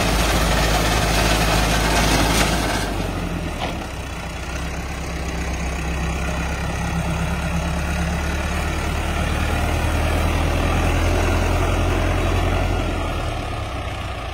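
A reaper clatters as it cuts through dry wheat stalks.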